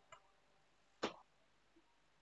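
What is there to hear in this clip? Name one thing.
A helmet strap buckle clicks.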